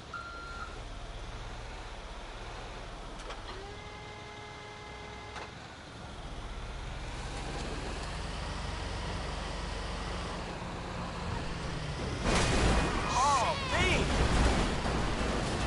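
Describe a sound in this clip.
A truck engine rumbles steadily and grows louder.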